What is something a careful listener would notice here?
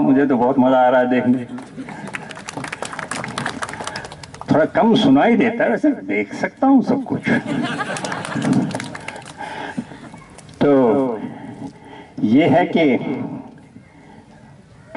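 An older man speaks with animation through a microphone and loudspeaker outdoors.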